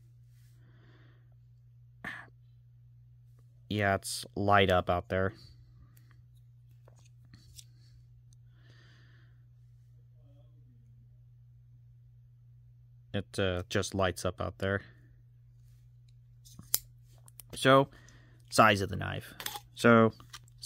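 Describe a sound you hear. A folding knife blade clicks softly.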